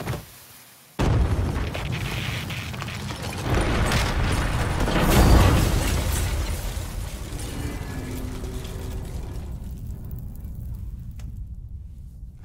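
A loud explosion booms and rumbles on.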